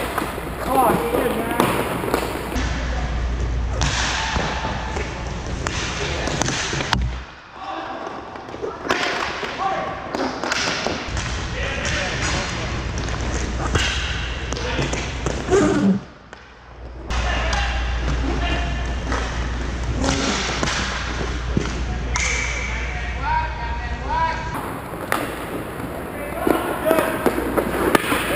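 Skate wheels roll and scrape across a hard floor in a large echoing hall.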